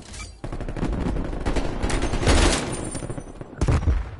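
A rifle fires a short burst of shots.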